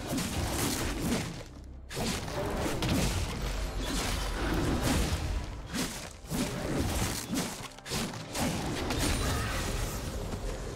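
Video game combat effects of blows and spells crackle and thump.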